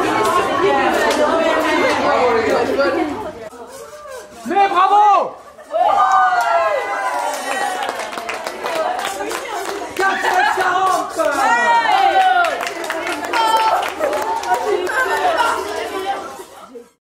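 A crowd of children chatter and shout with excitement nearby.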